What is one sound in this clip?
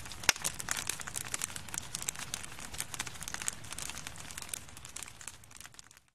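A wood fire crackles and pops up close, slowly quieting.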